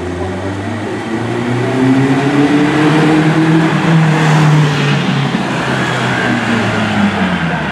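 A small classic coupe drives past, its engine buzzing.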